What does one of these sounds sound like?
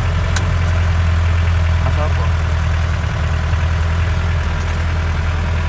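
An old vehicle's engine rumbles loudly and steadily from inside the cab.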